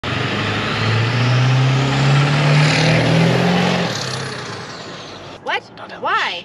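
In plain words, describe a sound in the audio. A large truck engine rumbles as the truck drives past and fades away.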